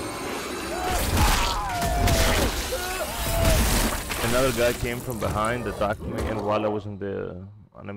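Flesh tears and squelches wetly.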